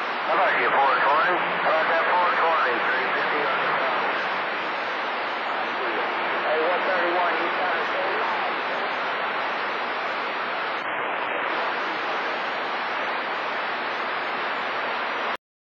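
Radio static hisses and crackles loudly and steadily.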